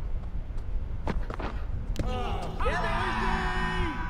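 A bat strikes a cricket ball with a sharp knock.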